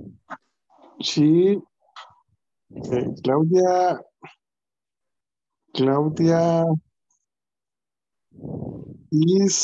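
A woman speaks slowly and clearly over an online call.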